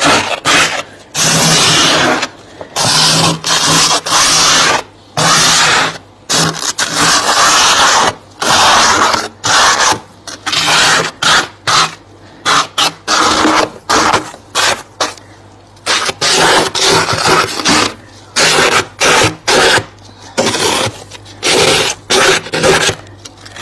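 A plastic scraper scrapes and crunches through thick frost in short, repeated strokes.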